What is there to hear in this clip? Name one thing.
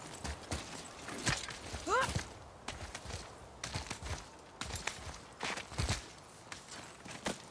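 Hands grip and scrape on rock while climbing.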